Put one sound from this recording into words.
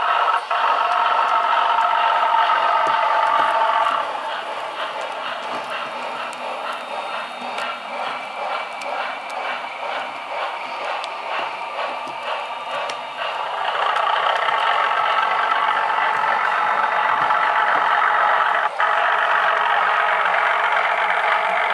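A small electric motor whirs steadily as a model train runs.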